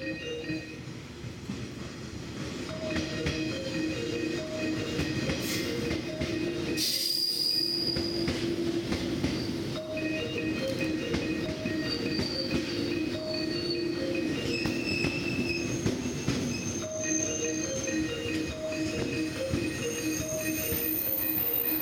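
Train wheels clack over rail joints.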